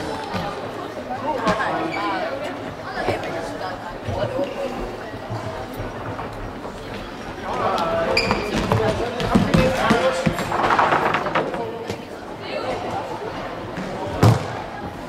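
Boys shout and call out to each other in a large echoing hall.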